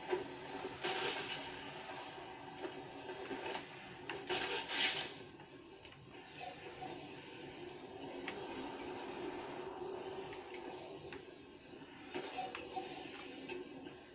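Video game sound effects and music play from a television's speakers.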